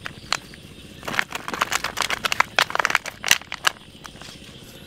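A plastic bottle crinkles as it is handled.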